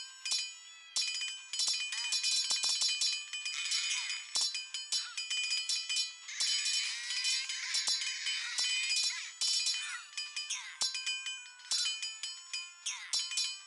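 Swords clash and clang rapidly in a battle.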